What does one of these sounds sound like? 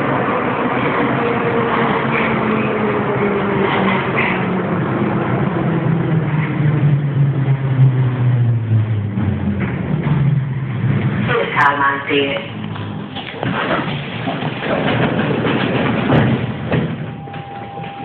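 A subway train rumbles loudly along the tracks.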